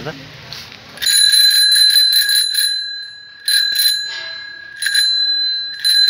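A toy bicycle's electronic horn plays bright, beeping tones in bursts.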